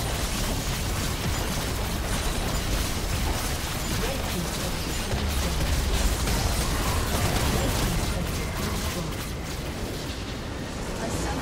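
Spell effects crackle and blast in a fierce battle.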